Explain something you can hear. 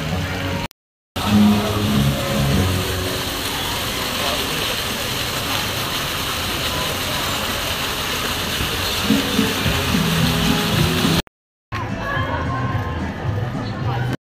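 A crowd chatters in the background outdoors.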